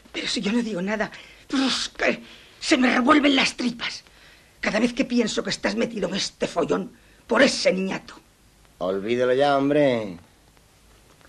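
A middle-aged woman speaks forcefully nearby.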